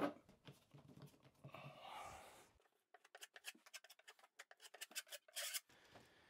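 A metal scraper scrapes against a wall.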